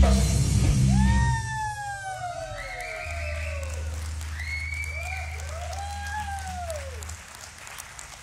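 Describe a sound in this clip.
An electric guitar squeals with feedback that swoops up and down.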